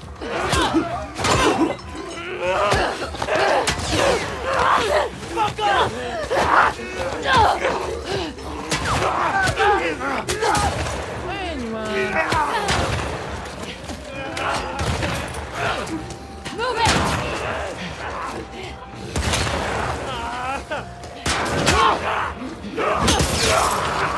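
Men grunt and shout while struggling in a fight.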